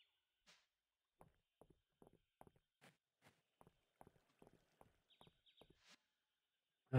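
Soft footsteps tap quickly and evenly on stone.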